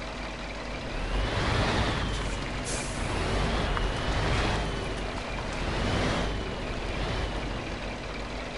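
A truck engine revs up and down several times.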